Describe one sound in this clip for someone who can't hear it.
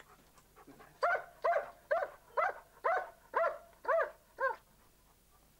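A dog barks repeatedly close by.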